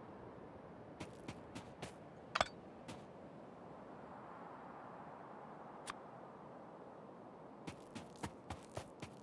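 Short clicks and pops of game sound effects sound as rail pieces are placed.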